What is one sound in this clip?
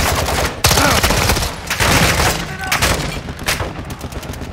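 A pistol fires several sharp shots.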